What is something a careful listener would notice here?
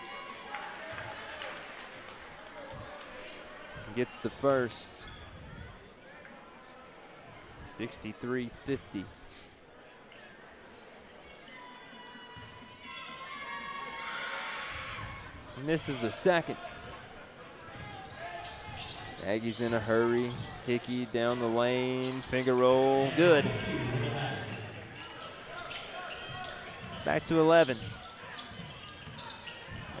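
A crowd murmurs in a large echoing gym.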